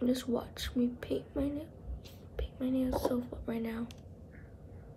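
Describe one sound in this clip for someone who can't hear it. A young girl talks calmly close by.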